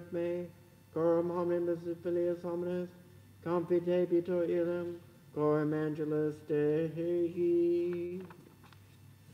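A man chants a slow, sung prayer in an echoing room.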